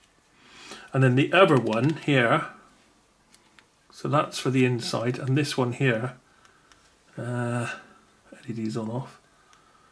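Buttons on a small remote control click softly.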